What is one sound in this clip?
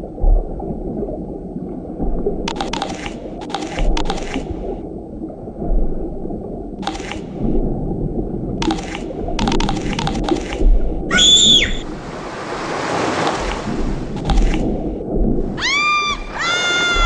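Water rumbles and bubbles steadily underwater.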